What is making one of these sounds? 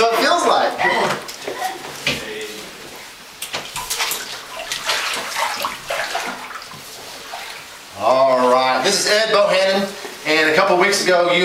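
A man speaks loudly nearby, his voice echoing.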